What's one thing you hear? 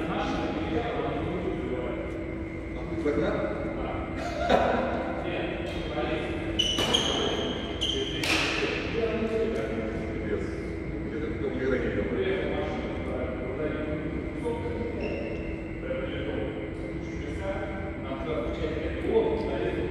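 Men talk casually nearby in a large echoing hall.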